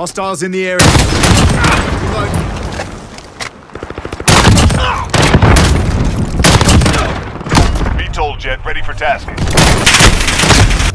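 Rifle gunfire bursts loudly in rapid shots.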